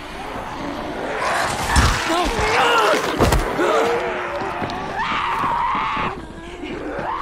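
A zombie snarls and growls up close.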